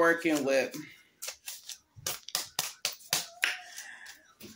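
Paper bills rustle and snap as they are flicked.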